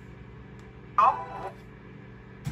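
A short booming chime plays from a laptop speaker.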